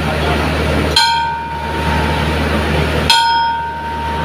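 A hand bell rings sharply twice.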